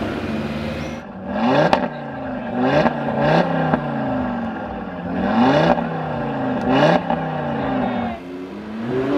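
A car engine revs hard in short bursts up close.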